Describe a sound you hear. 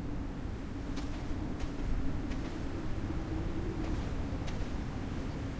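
A game character's footsteps tap softly on the ground.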